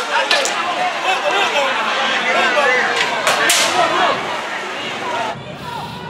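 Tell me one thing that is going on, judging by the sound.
A crowd of men shout and call out loudly nearby outdoors.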